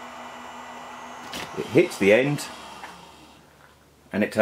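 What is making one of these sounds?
A small cooling fan whirs steadily and then shuts off.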